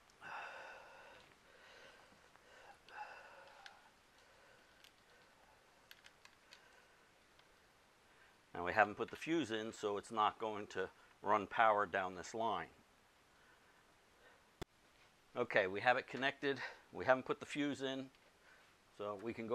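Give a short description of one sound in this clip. Metal clips click against battery terminals.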